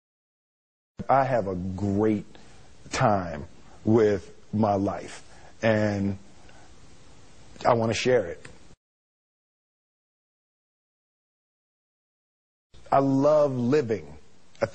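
A man speaks calmly and thoughtfully, close to a microphone.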